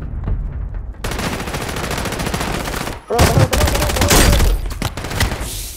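Gunshots fire in rapid bursts, loud and sharp.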